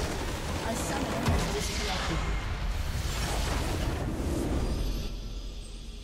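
A loud magical explosion bursts and rumbles.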